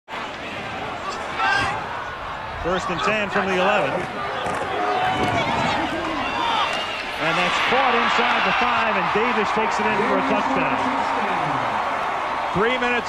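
A large stadium crowd roars and cheers, swelling loudly partway through.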